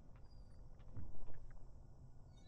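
A wooden door swings shut with a heavy thud.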